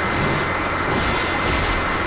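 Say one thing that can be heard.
Swords clash and ring.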